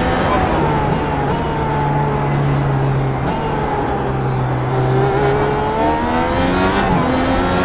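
A racing car engine whines loudly, dropping in pitch as the car slows and then climbing again as it speeds up.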